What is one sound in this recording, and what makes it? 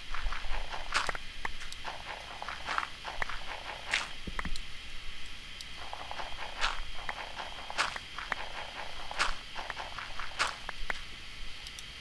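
A pickaxe knocks against stone in quick, repeated blows.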